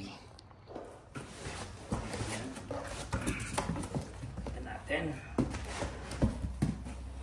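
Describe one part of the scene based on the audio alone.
Cardboard box flaps scrape and rustle as they are pulled open.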